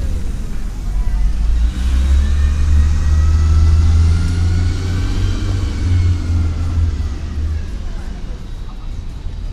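A crowd of men and women chatter faintly in the distance.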